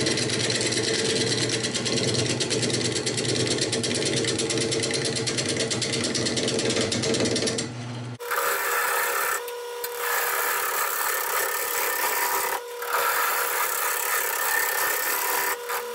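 A gouge scrapes and hisses against spinning wood.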